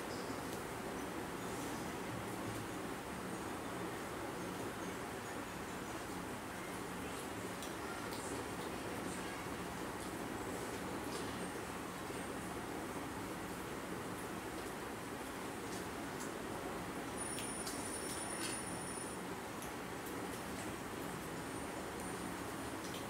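A quiet murmur of voices goes on nearby.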